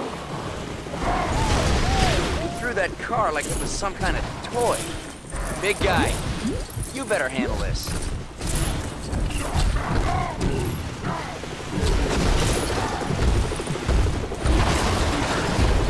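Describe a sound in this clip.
Heavy punches land with deep thuds.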